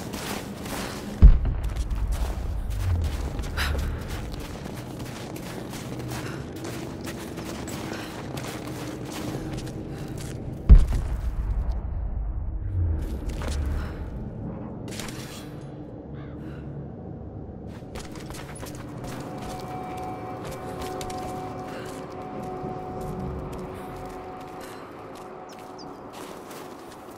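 Wind blows steadily through a cave.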